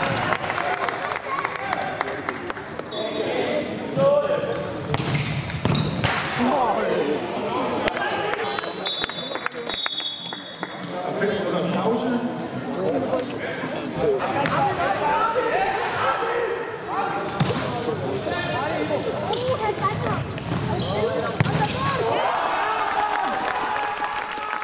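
Spectators chatter and shout throughout a large echoing sports hall.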